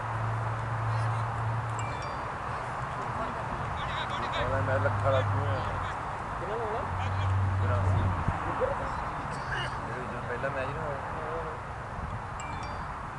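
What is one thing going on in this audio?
Wind rumbles across an outdoor field.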